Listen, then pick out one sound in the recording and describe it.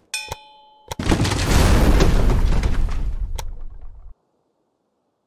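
A building collapses with a loud rumbling crash.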